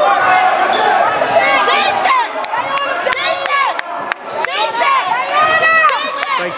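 A basketball bounces with sharp thumps.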